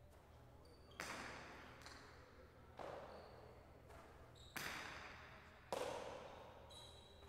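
A hard ball smacks against a wall and echoes through a large hall.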